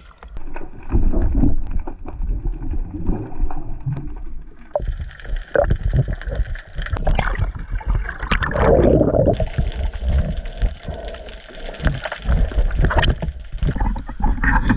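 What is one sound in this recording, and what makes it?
Water bubbles and rushes around a diver underwater.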